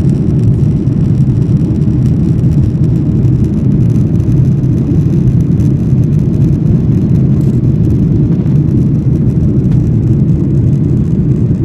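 A jet engine roars steadily in the cabin with a deep rumble.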